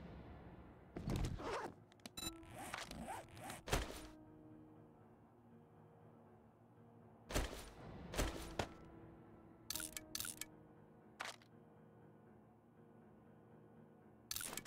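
Short clicks of a game menu sound now and then.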